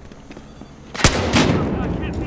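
A single loud gunshot booms.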